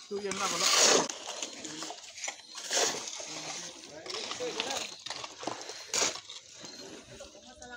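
Tools scrape and slap across wet concrete.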